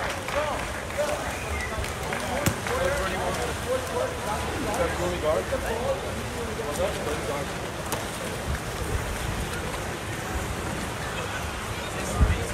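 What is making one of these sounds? Water splashes as swimmers thrash and kick in a pool.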